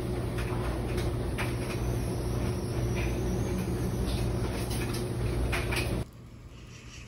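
Laundry machines hum steadily nearby.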